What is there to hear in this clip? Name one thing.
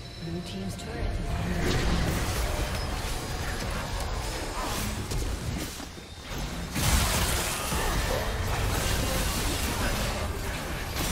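Spell effects whoosh and crackle in a game fight.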